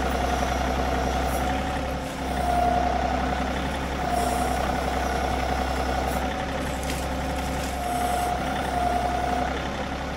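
A hydraulic pump whines, rising and falling as an arm moves.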